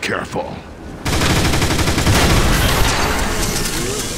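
Energy guns fire in rapid bursts.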